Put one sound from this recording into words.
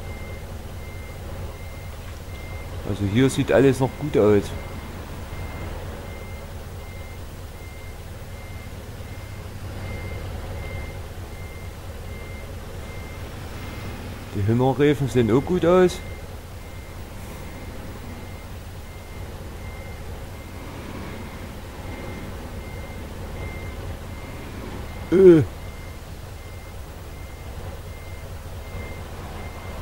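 A heavy truck engine rumbles steadily as the truck drives along a road.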